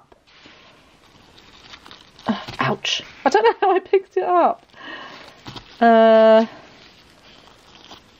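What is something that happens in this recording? A plastic bag rustles as a hand rummages through it.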